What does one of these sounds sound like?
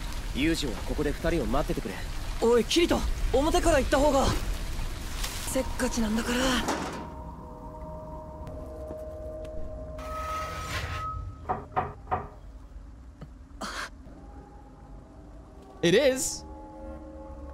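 A young man talks into a nearby microphone.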